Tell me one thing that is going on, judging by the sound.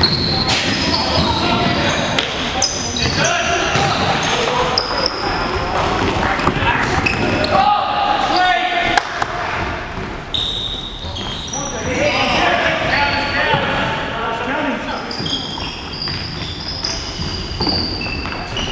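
Shoes squeak sharply on a hard indoor floor.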